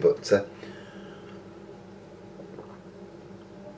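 A man sips and gulps a drink close by.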